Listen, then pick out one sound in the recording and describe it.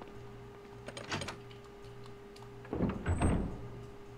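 A heavy door creaks open and thuds.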